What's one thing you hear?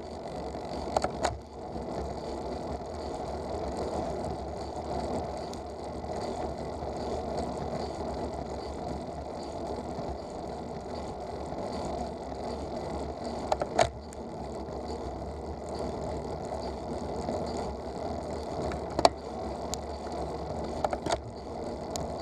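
A vehicle jolts over bumps in the road with sharp knocks.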